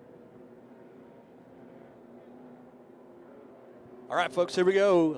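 Race car engines drone from a distance.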